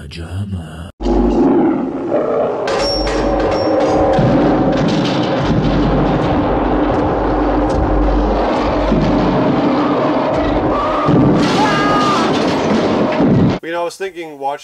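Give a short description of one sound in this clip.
A giant ape roars loudly.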